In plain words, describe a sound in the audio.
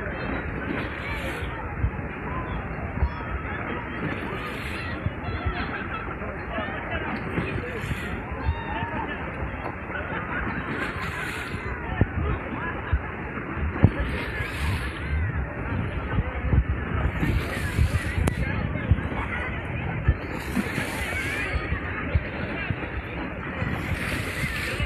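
Water splashes and sloshes as swimmers move.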